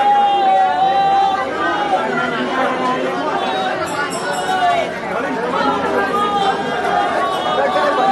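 A woman sings loudly nearby.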